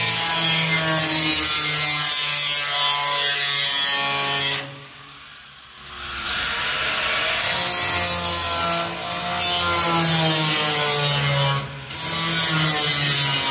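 An angle grinder screeches loudly against sheet metal, pausing briefly before grinding again.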